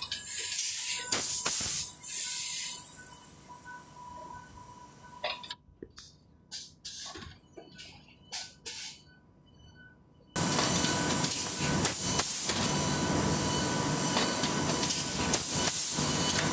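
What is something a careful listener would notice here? Metal parts of a packaging machine clack sharply at intervals.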